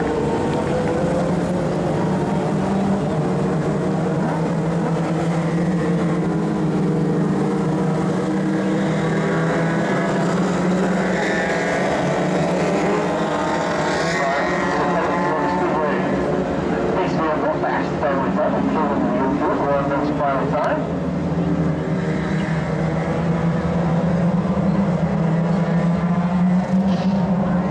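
Race car engines roar loudly as the cars speed around a dirt track.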